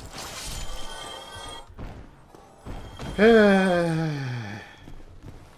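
Footsteps clink on stone paving.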